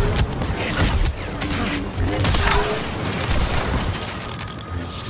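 Blaster shots zap and crackle in rapid bursts.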